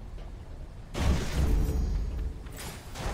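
A crackling electric burst booms.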